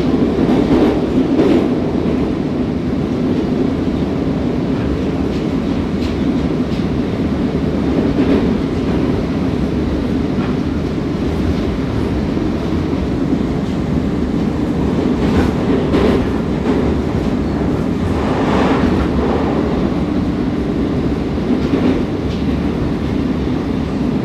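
A metro train rumbles and roars through a tunnel.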